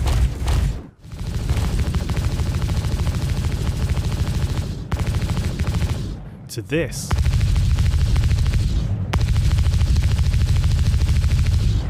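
A spacecraft engine rumbles steadily.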